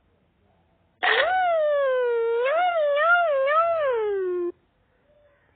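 A cartoon cat lets out a long, wavering, high-pitched yowl.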